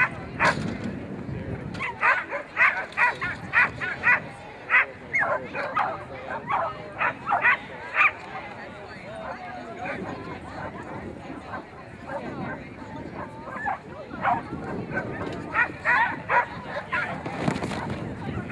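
A woman calls out short commands to a dog outdoors.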